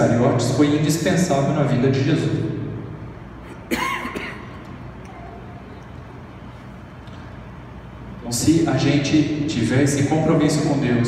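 A young man speaks calmly into a microphone over loudspeakers in an echoing hall.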